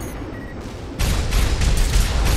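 A heavy explosion booms.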